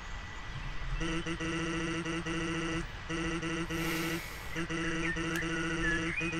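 Rapid, high electronic blips chirp in quick bursts as game dialogue types out.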